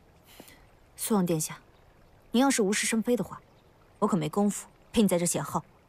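A young woman speaks firmly, close by.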